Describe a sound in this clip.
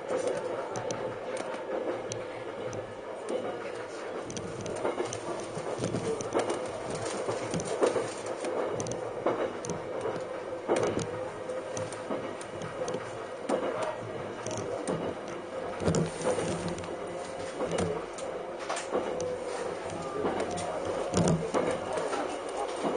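Train wheels click and rattle over the rail joints.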